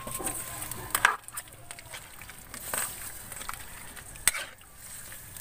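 A metal ladle scrapes and clinks against a pan.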